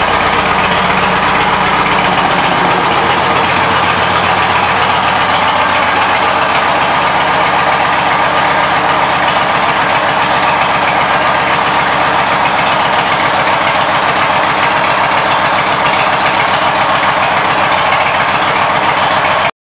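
A motorcycle engine idles with a steady, throbbing rumble.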